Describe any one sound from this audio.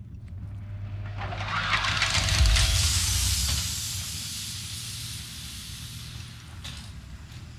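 Air hisses loudly through an airlock, then slowly fades.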